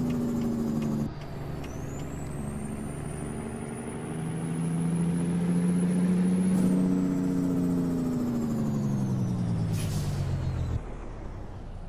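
A truck engine hums and rises and falls in pitch as it revs through the gears.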